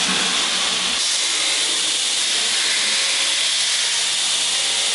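A grinding wheel whirs and hisses steadily against metal.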